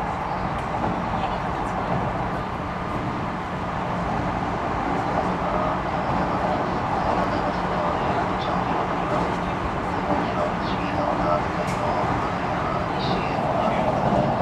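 An electric train hums and rumbles steadily nearby.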